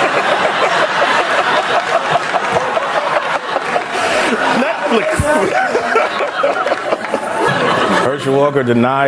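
An audience laughs and applauds loudly.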